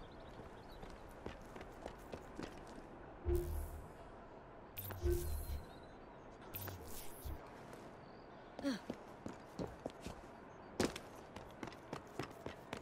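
Footsteps patter quickly across a tiled roof.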